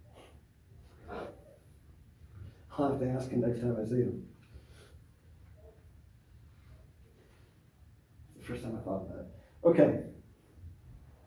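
A man speaks calmly in short bursts, close by.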